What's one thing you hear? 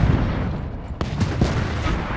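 A shell strikes a tank with a sharp bang.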